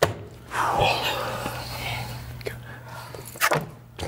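A young man cheers loudly and excitedly.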